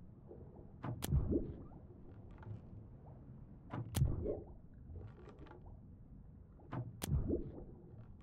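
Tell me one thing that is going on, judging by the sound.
A bowstring snaps as an arrow is shot.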